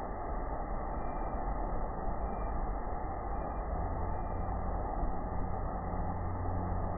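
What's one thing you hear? Rushing water roars and crashes loudly, close by.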